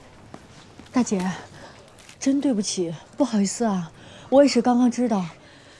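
A young woman speaks apologetically, close by.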